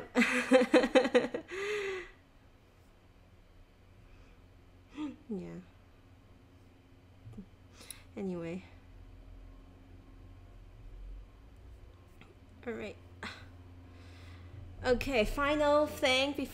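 A young woman talks casually and close to a microphone, with pauses.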